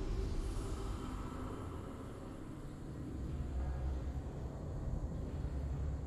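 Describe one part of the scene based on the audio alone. Triumphant game music plays.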